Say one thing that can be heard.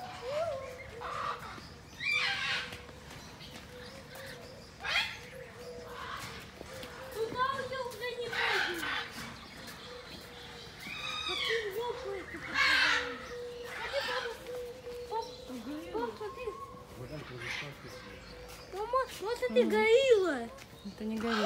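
Birds chirp and squawk nearby.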